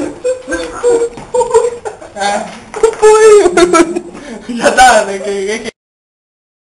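A young man talks and laughs loudly, close by.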